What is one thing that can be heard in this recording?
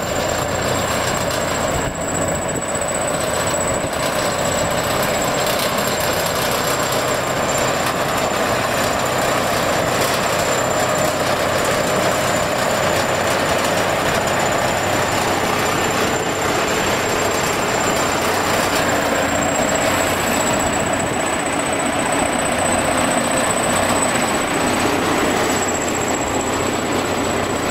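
A bulldozer engine rumbles steadily close by.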